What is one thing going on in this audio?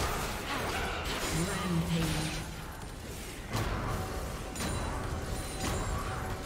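Spell effects burst and whoosh in a game fight.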